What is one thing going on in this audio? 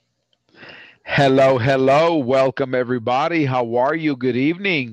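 A man speaks with animation over an online call, through a headset microphone.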